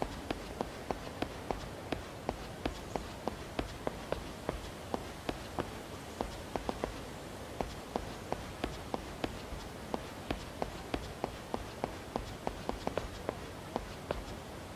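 Fast footsteps tap on hard ground as a man runs.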